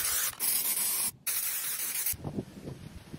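A pressure washer sprays water with a loud, steady hiss.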